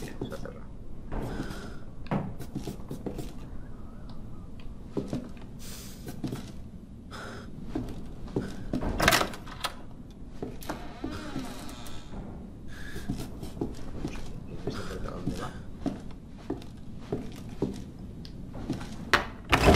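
Footsteps creak slowly across a wooden floor.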